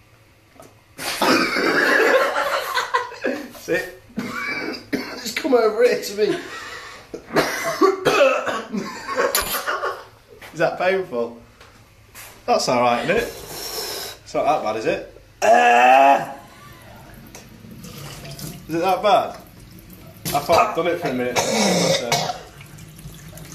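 A young man talks loudly and animatedly close by.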